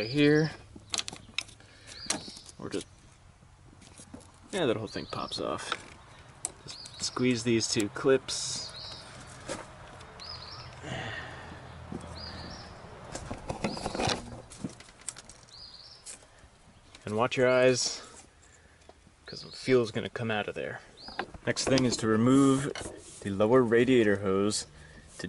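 Plastic clips click and rubber hoses rub as hands work them loose.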